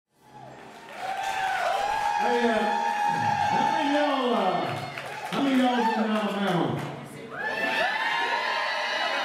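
A man sings loudly through a microphone.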